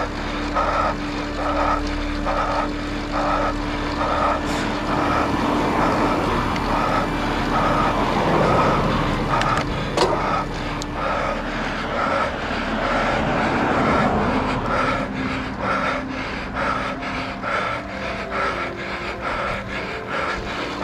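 Road bike tyres hum on asphalt.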